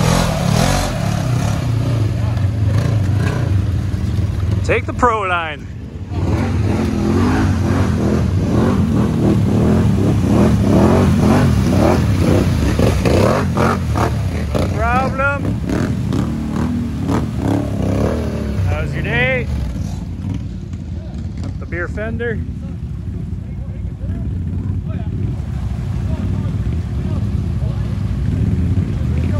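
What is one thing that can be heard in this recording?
Off-road vehicle engines rumble and rev loudly outdoors.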